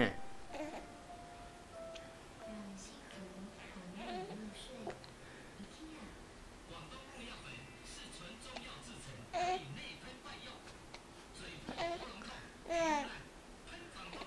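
A baby coos and squeals softly close by.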